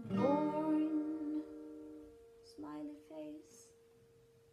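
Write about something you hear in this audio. A young woman sings softly, close by.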